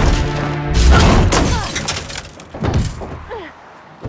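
A car windshield cracks loudly.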